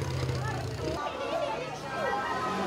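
Children chatter nearby.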